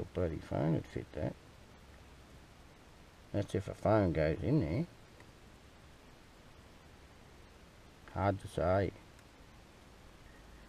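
Buttons click on a small handheld device.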